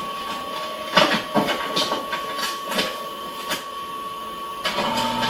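A copy machine lid clicks and thuds as it is shut.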